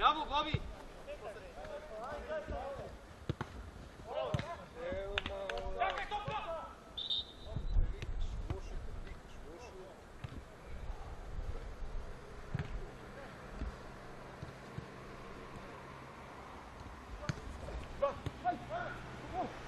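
A football thuds as players kick it.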